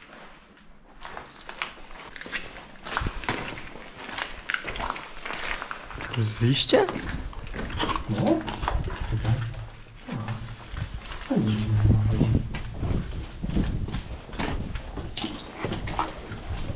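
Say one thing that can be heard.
Footsteps crunch over loose debris and rubble.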